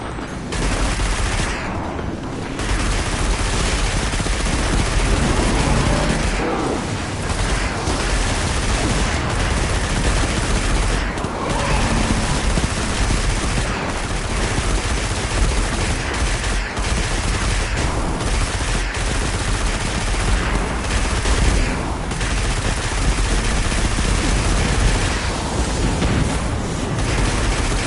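A vehicle engine roars steadily.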